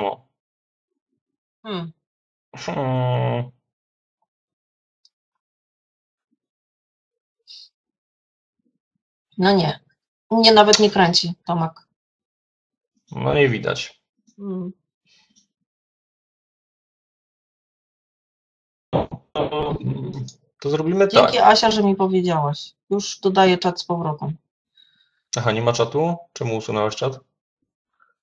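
A man speaks in bursts over an online call, with pauses.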